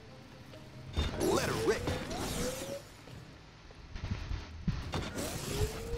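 Electric traps zap and crackle in loud bursts.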